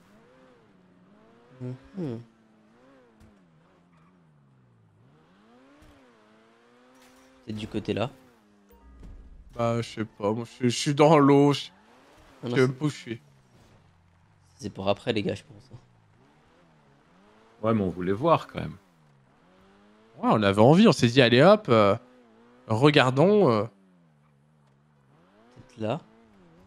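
A sports car engine roars and revs, rising and falling in pitch.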